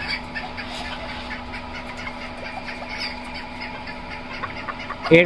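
Chickens cluck and chirp softly nearby.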